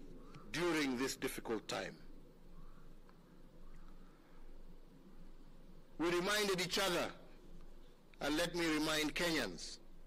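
A man speaks slowly and formally into a microphone, with long pauses.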